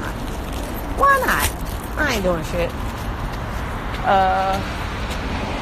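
A young woman speaks with animation close to a phone microphone.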